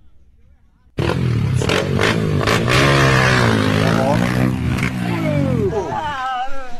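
A dirt bike engine revs loudly.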